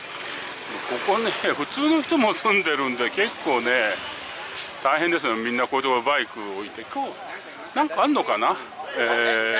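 A man talks nearby in a lively voice.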